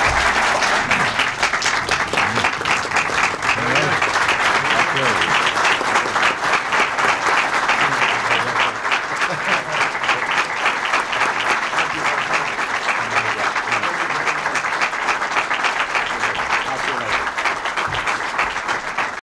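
A crowd applauds steadily in a room.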